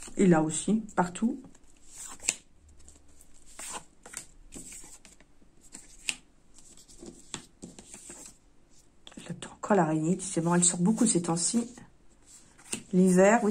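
Cards rustle and slide as a hand deals them onto a soft surface.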